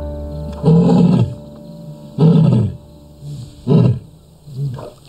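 A lioness grunts in deep, rhythmic calls, close by.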